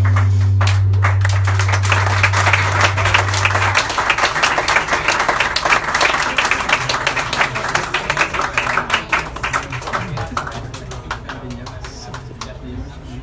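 A keyboard plays chords.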